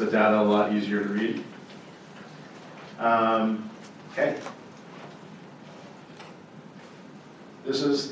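A man speaks into a microphone over a loudspeaker in a large hall, pausing between phrases.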